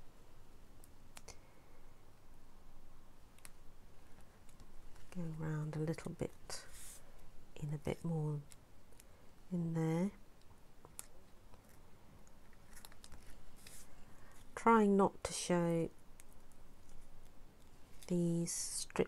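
Paper rustles and crinkles as hands fold it.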